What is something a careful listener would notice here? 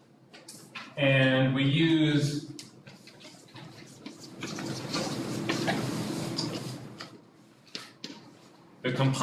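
A man speaks in a lecture voice with some echo.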